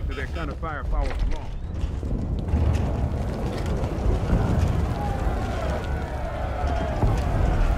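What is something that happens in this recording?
Fists and blows thud in a brawl.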